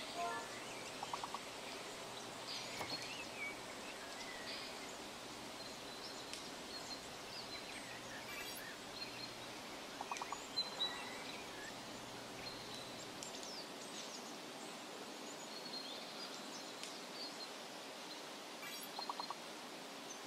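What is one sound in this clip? A short electronic game chime plays several times.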